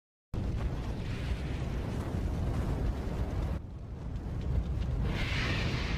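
A large fire roars and crackles.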